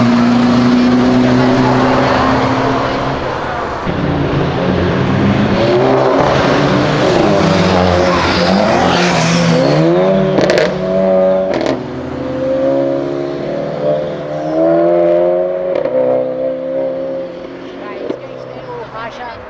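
Car engines rev loudly and roar past.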